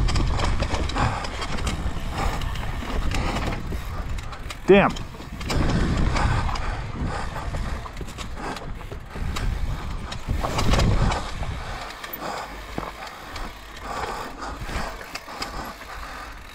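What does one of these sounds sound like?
Bicycle tyres rumble and crunch over dirt and rocks.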